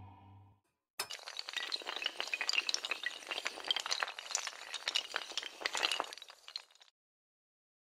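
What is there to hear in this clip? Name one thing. Dominoes clatter as they topple one after another.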